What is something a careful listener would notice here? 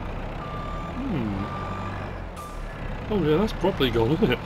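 A loader engine revs up and down.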